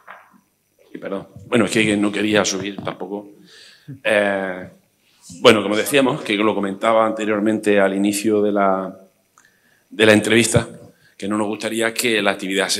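A middle-aged man speaks through a microphone at a lectern, echoing in a large hall.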